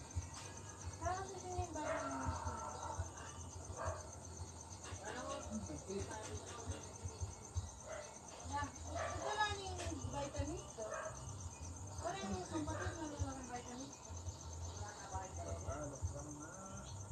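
A young girl talks casually, close to the microphone.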